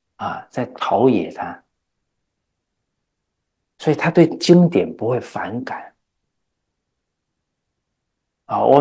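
A middle-aged man speaks calmly and earnestly into a microphone, pausing between phrases.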